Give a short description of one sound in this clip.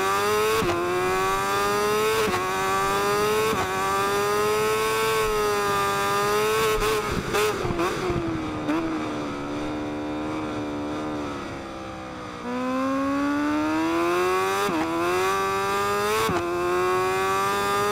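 A motorcycle engine screams at high revs, dropping sharply with each gear change and climbing again.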